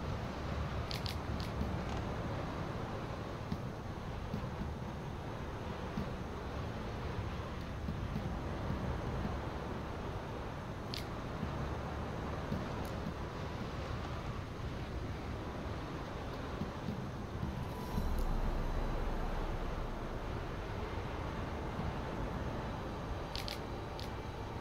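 Soft interface clicks sound as pages turn in a game menu.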